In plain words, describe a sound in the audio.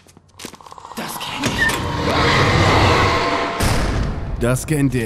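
A man screams loudly.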